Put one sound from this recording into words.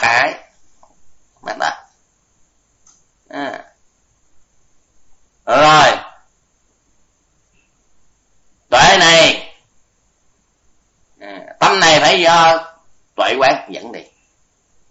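An elderly man speaks slowly, in short phrases with long pauses.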